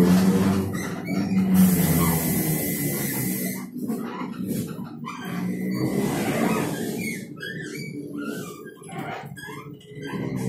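A bus engine hums steadily while driving.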